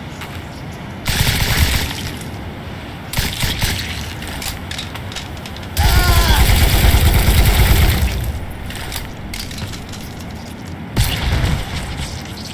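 A rifle fires in short, loud bursts.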